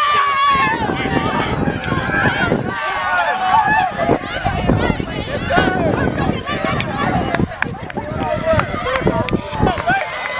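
Teenage girls cheer and scream with excitement.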